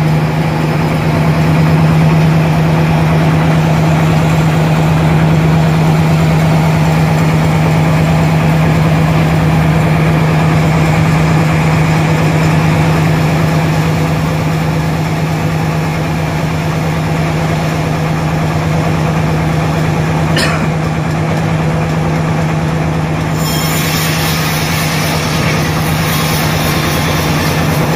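A large band saw cuts through a log with a loud, steady hum and rasp.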